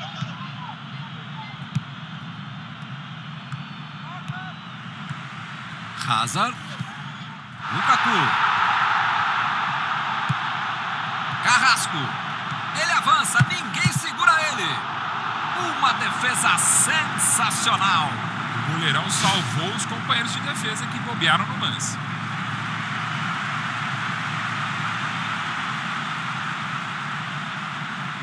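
A stadium crowd roars steadily and swells loudly.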